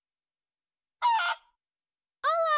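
A hen clucks briefly.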